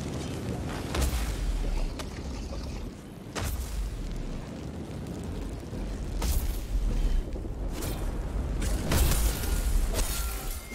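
Heavy weapon blows strike a creature with sharp impacts.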